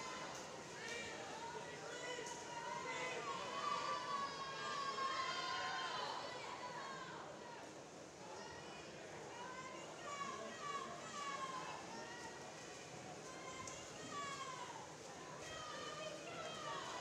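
Swimmers splash steadily through the water.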